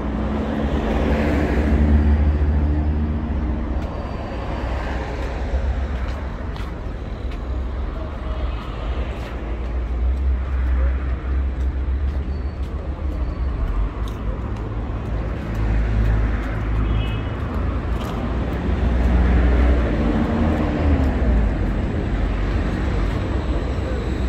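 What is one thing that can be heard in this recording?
Traffic rumbles steadily on a nearby road.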